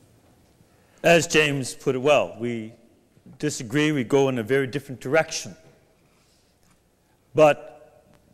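A man speaks calmly into a microphone in a large room with a slight echo.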